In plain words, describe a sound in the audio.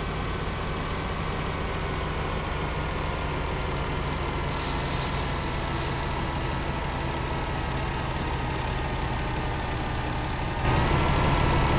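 A truck engine hums steadily, rising and falling in pitch.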